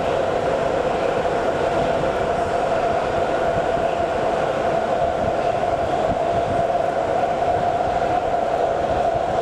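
A subway train rumbles and whines steadily as it runs along the tracks.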